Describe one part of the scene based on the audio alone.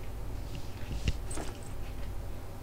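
A gun clicks as a weapon is switched.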